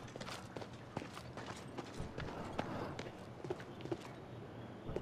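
Footsteps patter quickly across a wooden floor.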